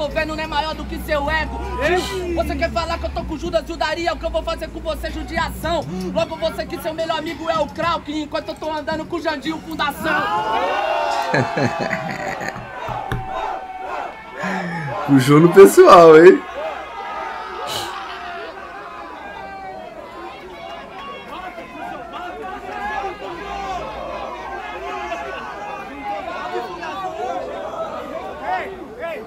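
A young man raps fast and forcefully over a microphone.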